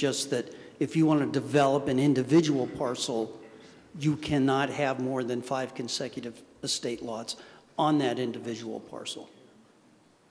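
An elderly man speaks with animation into a microphone in an echoing hall.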